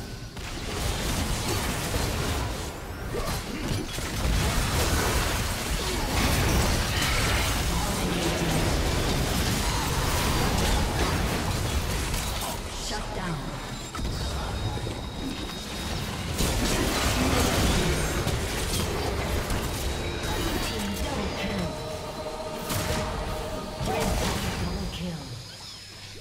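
Spell effects crackle and blast in a chaotic fight.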